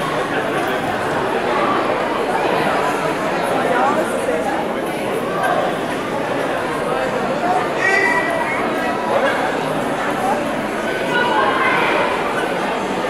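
Many young people chatter and call out in a large echoing hall.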